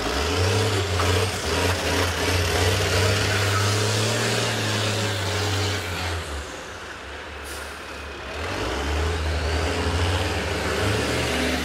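Bus engines roar loudly.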